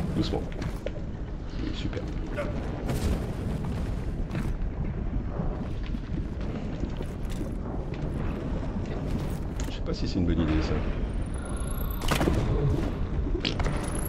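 Molten lava bubbles and rumbles with a deep, steady roar.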